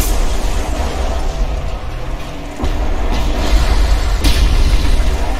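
Gunfire and blasts boom loudly from a video game.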